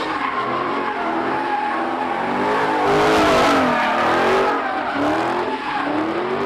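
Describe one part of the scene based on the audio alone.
Tyres screech against the ground.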